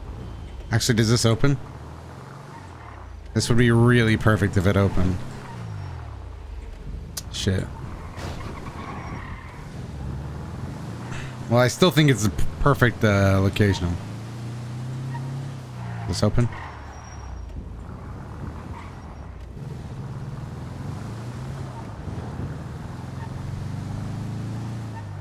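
A van's engine hums steadily as it drives along.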